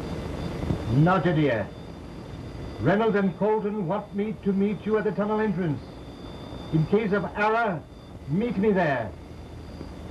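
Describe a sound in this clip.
An elderly man speaks loudly into a microphone.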